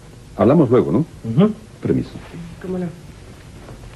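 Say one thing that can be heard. A man speaks with animation at close range.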